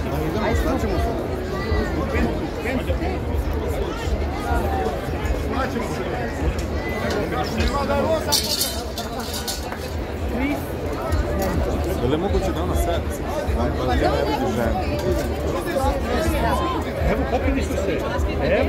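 A crowd chatters and talks loudly all around.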